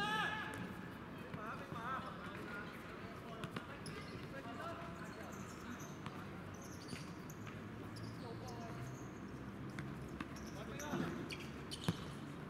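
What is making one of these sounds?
Shoes squeak on the court surface.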